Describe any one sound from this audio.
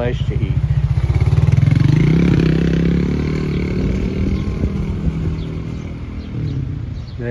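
A motorcycle engine hums close by and fades as the motorcycle rides away.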